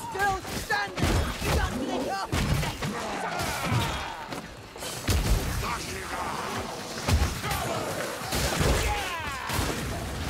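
Blades slash and strike bodies with heavy thuds.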